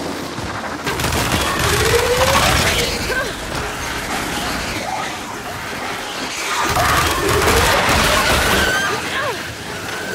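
A swarm of creatures shrieks and flutters in a loud rush.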